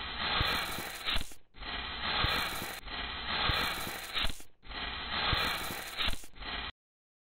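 A tool scrapes and scratches across a rough surface in repeated strokes.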